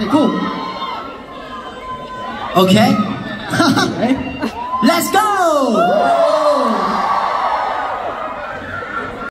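A crowd of young women screams and cheers loudly close by in a hall.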